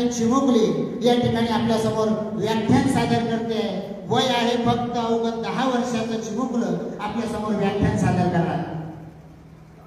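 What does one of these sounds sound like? A man speaks loudly and with animation through a loudspeaker in a large echoing hall.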